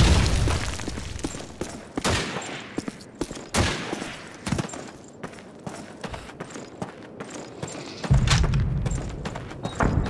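Footsteps crunch on sand and dirt.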